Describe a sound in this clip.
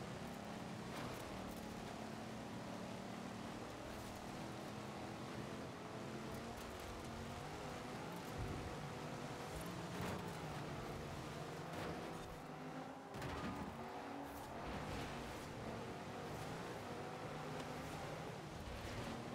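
A car engine roars steadily, rising and falling in pitch as it shifts gears.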